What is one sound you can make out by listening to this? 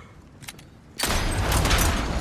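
A gunshot cracks sharply.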